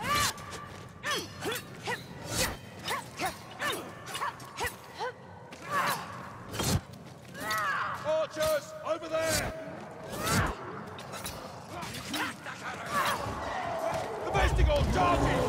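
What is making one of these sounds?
Quick footsteps thud on stone.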